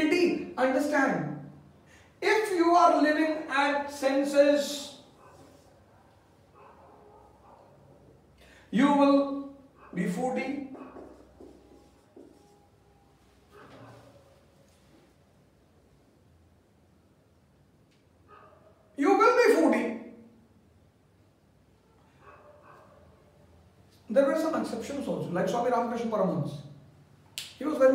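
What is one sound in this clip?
A middle-aged man speaks calmly in bursts with pauses, close by.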